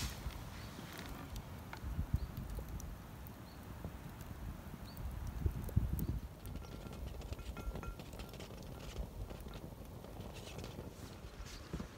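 A campfire crackles and pops softly.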